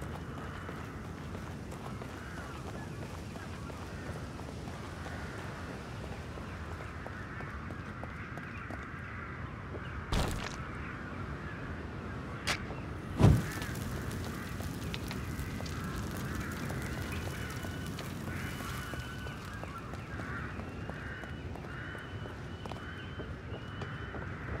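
Footsteps crunch over gravel and dry grass.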